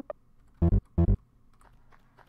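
Short electronic game blips sound twice.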